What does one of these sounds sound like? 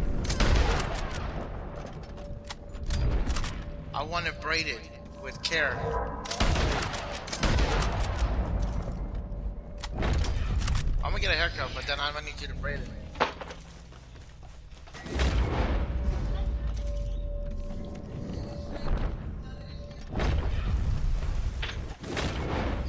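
A rifle fires loud shots that echo and roll away.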